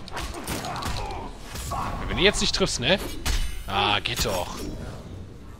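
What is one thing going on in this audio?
Punches and kicks land with heavy thuds in a video game fight.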